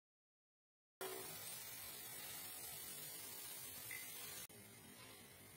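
Hot oil sizzles in a pan.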